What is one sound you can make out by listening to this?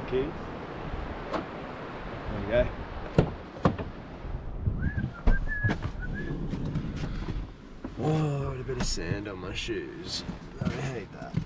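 A young man talks casually and close by.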